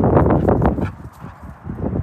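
A dog pants heavily as it trots close by.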